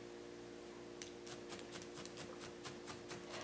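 A small tool taps and clicks lightly against wood.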